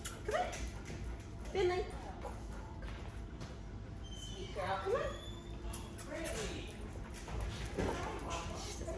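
A young woman talks to a dog in a high, coaxing voice nearby.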